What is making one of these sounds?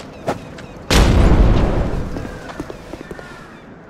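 A firebomb bursts into flames with a loud, rumbling blast.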